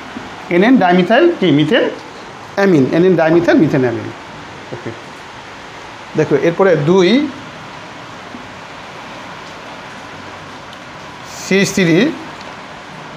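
A man speaks calmly in short phrases, as if lecturing.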